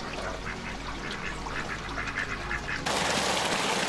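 Ducks quack.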